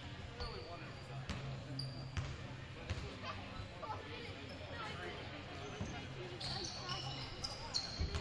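Young players call out to each other in an echoing gym.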